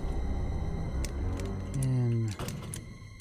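A combination lock's metal dials click as they turn.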